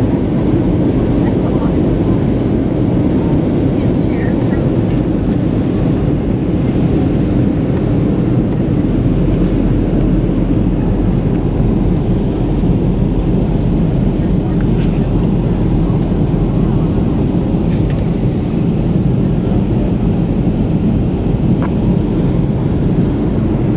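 Jet engines roar steadily, heard from inside an airliner cabin.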